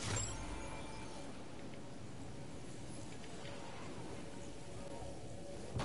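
Wind rushes loudly as a game character glides down.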